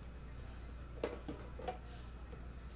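A metal tin lid clicks and knocks.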